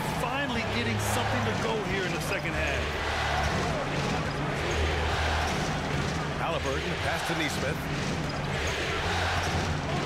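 A large crowd murmurs steadily in an arena.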